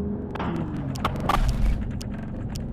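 A tyre bursts with a loud bang.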